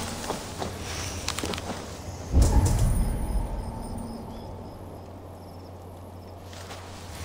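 Leaves rustle as someone pushes through dense bushes.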